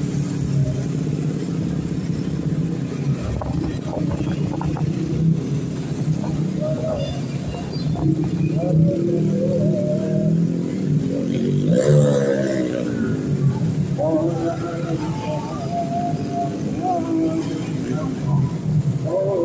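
Traffic rumbles along a busy street.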